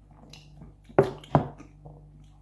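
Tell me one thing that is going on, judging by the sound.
A glass is set down on a table with a knock.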